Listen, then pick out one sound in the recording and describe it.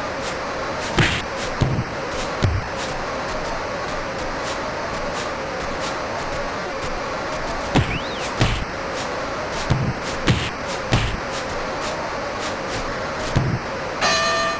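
Punches land with dull thuds.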